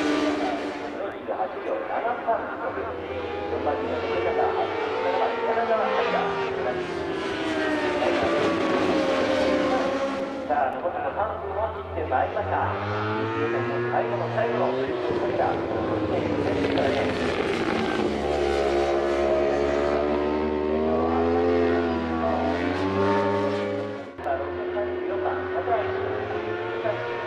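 Motorcycle engines roar and whine as racing bikes pass, rising and falling in pitch.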